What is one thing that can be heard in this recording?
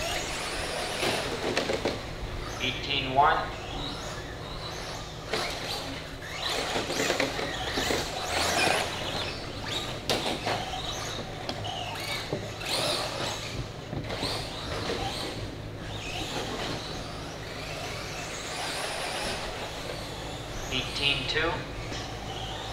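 Tyres of small cars scrabble over packed dirt.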